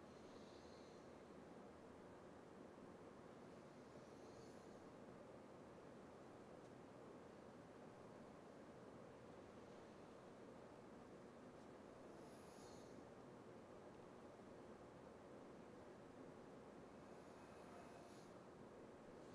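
Shoes shuffle softly on a carpeted floor.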